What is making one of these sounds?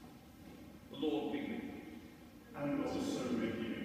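A man reads aloud in an echoing hall.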